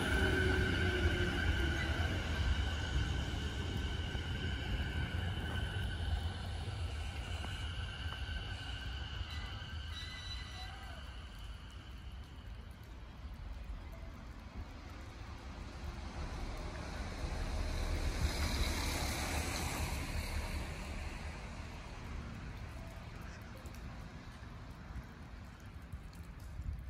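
A train rumbles past on the tracks and fades into the distance.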